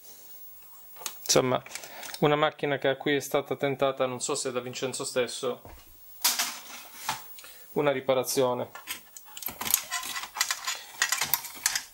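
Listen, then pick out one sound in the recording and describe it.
A screwdriver squeaks as it turns screws.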